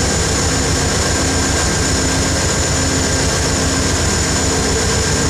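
A diesel locomotive engine rumbles loudly and steadily close by.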